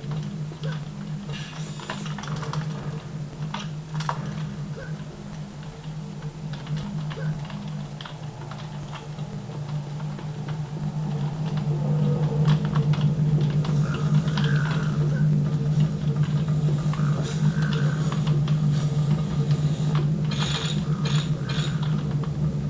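Keys on a keyboard click and clatter rapidly.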